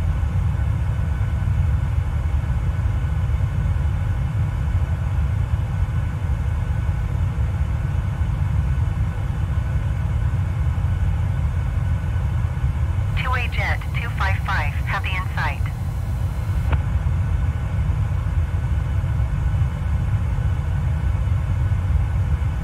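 A jet engine drones steadily in flight.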